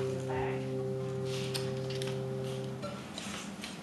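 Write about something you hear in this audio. Acoustic guitar strings ring out in a sustained chord.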